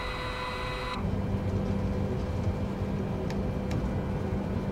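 Jet engines hum low and muffled from inside the cockpit.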